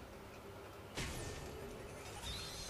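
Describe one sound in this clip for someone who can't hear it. A game machine whooshes as it powers up.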